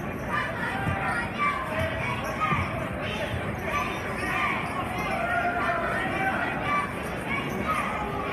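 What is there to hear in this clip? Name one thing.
Young women cheer loudly in a chant in an echoing gym.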